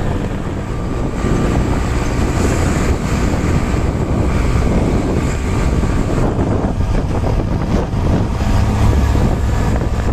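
A bus passes close by.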